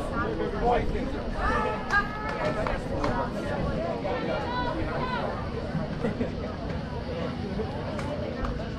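Young men call out and chatter outdoors at a distance.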